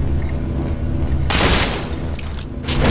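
An explosion bursts with a blast of flame.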